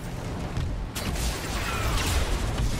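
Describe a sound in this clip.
An explosion bursts nearby.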